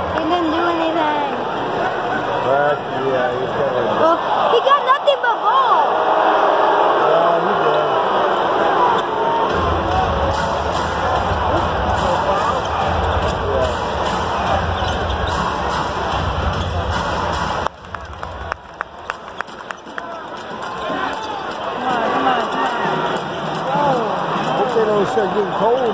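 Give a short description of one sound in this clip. A large crowd chatters and murmurs in a big echoing arena.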